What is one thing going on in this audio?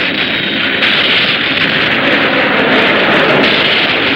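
A monster spews fire with a loud, rushing blast.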